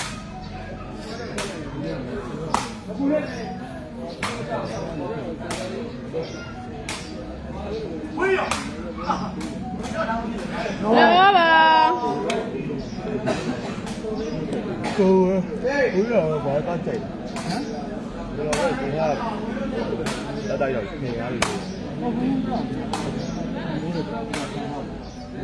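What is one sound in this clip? A rattan takraw ball is kicked with sharp smacks.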